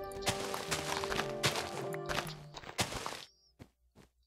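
Leaves rustle and crunch as they are broken.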